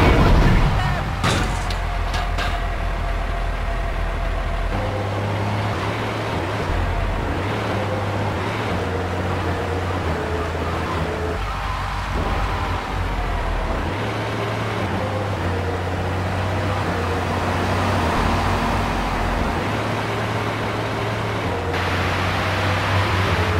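A fire truck engine drones as the truck drives along a road.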